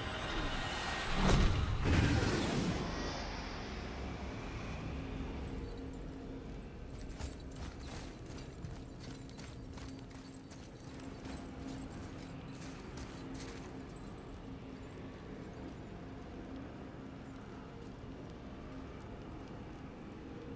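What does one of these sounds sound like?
A deep magical hum drones steadily.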